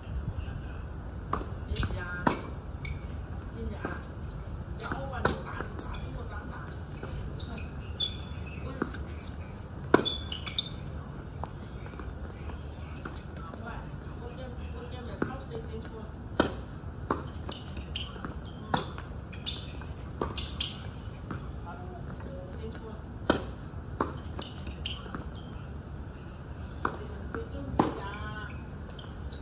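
Sneakers scuff and squeak on a hard court.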